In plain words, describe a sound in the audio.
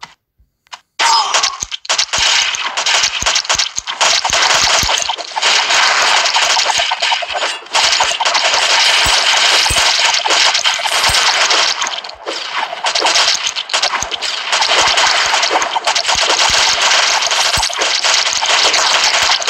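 Game weapons fire and explosions burst in rapid, dense bursts.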